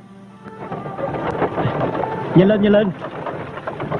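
Horse hooves clop.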